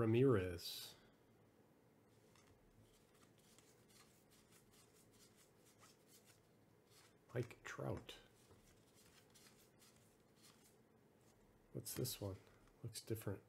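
Trading cards slide and rustle softly as they are flipped through by hand.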